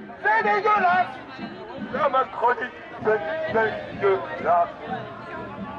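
A man shouts loudly through a megaphone close by.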